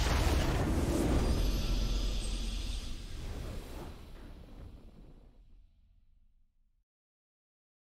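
A triumphant game victory fanfare plays and fades away.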